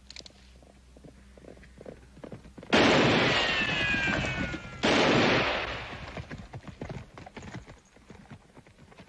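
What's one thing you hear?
A horse gallops away over dry ground.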